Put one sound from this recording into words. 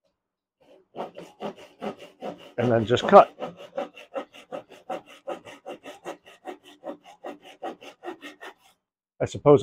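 A hand saw cuts through wood with quick, even strokes.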